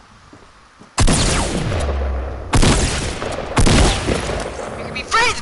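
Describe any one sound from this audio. Loud gunshots fire in rapid bursts.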